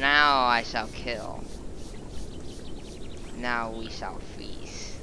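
A creature lets out shrill, wavering shrieks.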